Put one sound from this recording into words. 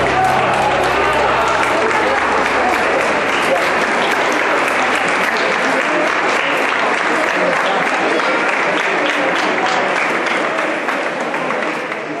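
A large crowd murmurs and chatters loudly in an echoing hall.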